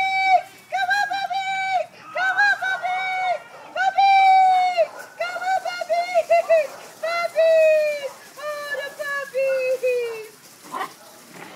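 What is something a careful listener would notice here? Several dogs howl together nearby.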